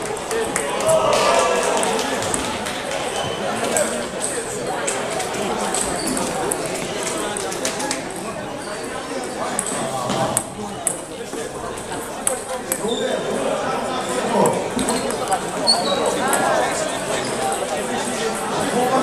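A table tennis ball clicks against paddles and the table in a large echoing gym.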